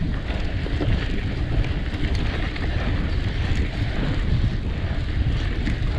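Wind rushes loudly past the rider at speed.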